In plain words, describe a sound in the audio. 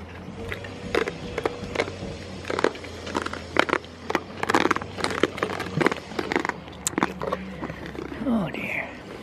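A goat chews and crunches a treat close by.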